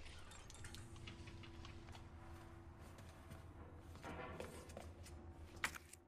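Footsteps scrape slowly on a hard floor.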